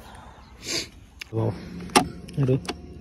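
A hand pats a motorcycle seat with soft thumps.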